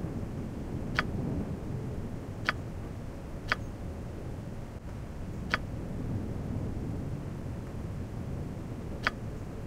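A computer mouse clicks sharply, a few times.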